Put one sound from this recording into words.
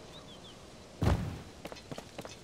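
A heavy boulder thuds against the ground.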